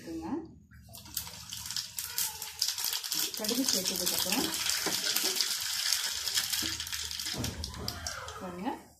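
Seeds crackle and sputter in hot oil in a pan.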